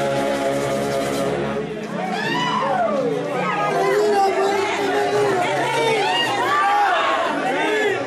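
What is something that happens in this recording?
Festive music plays loudly through a loudspeaker.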